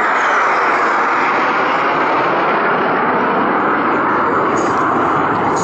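A jet engine roars loudly overhead with a steady, rushing noise.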